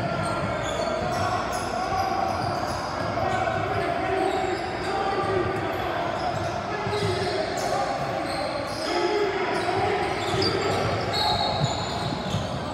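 A crowd of spectators chatters steadily.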